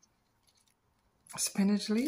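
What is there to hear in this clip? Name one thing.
Leafy greens rustle softly as a hand drops them onto food.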